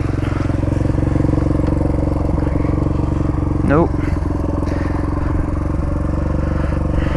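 A dirt bike engine idles steadily close by.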